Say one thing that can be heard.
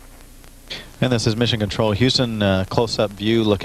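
A man speaks over a radio link with a fuller, closer sound.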